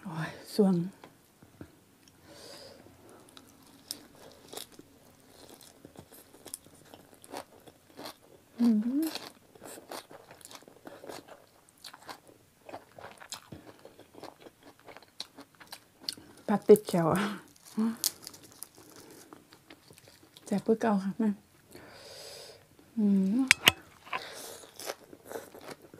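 A woman chews with wet smacking sounds.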